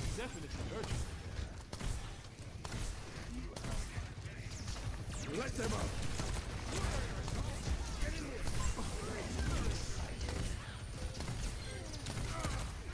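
Gunfire crackles rapidly in a fast-paced game battle.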